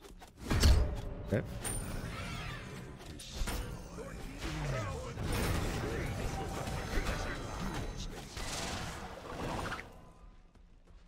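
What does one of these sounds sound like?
Weapons clash and magic effects burst in a video game battle.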